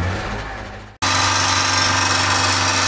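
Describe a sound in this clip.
An air compressor motor hums and rattles steadily close by.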